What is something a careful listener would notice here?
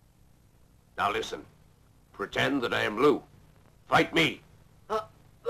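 A man speaks sternly and loudly.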